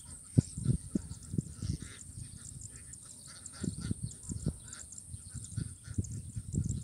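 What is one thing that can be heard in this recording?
Wind gusts buffet across an open field.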